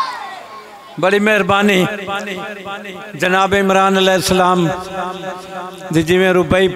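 An elderly man recites in a strong, drawn-out voice through a microphone.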